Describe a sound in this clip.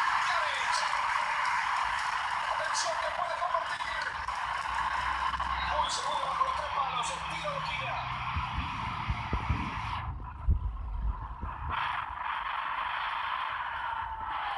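A cheering stadium crowd plays through a small tablet speaker.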